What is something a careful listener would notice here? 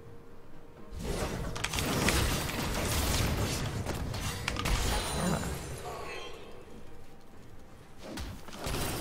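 Video game spells and hits burst and clash.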